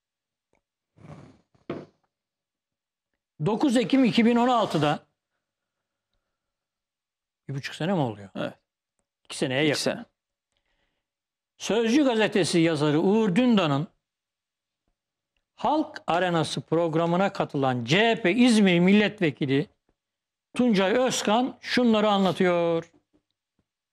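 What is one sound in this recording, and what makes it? An elderly man speaks calmly into a close microphone, in short bursts with pauses.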